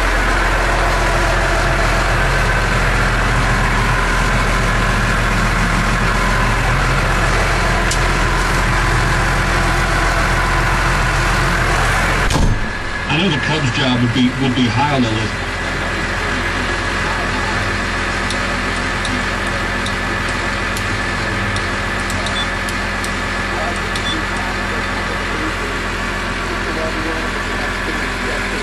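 A tractor engine runs with a steady, low drone.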